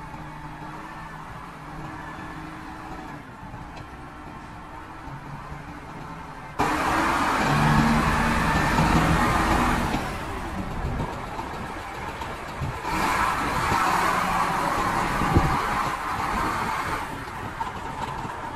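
A diesel engine idles steadily nearby.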